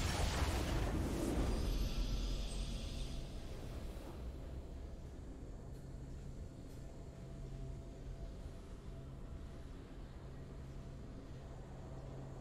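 A video game victory tune plays softly.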